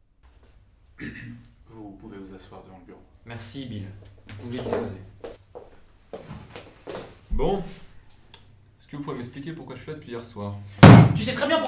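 A young man speaks calmly, close by.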